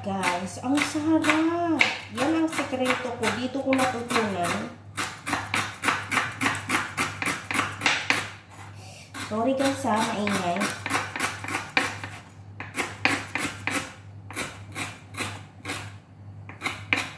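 A knife chops quickly and repeatedly on a wooden board.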